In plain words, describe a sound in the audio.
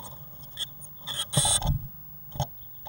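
A blue tit's claws scrabble on the wood of a nest box as it enters.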